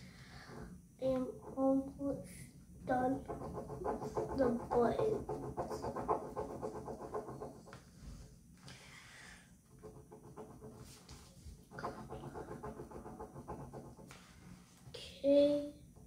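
A young boy talks calmly close by.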